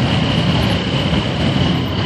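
Motorcycle engines rumble as a group of motorcycles rides slowly past.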